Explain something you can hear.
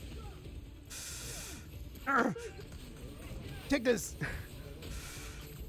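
A gas cloud bursts with a loud hiss.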